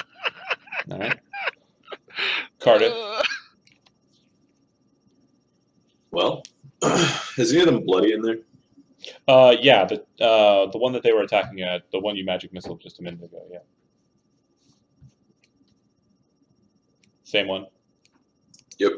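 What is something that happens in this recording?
Several men talk and laugh over an online call, heard through microphones.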